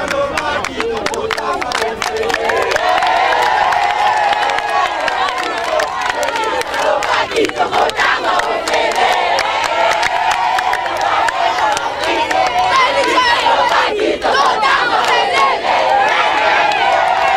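Teenagers clap their hands.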